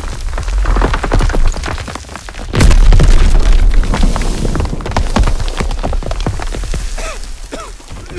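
A building collapses with a loud, rumbling crash.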